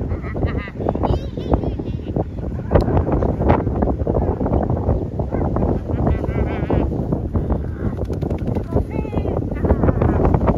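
A man speaks to a dog outdoors.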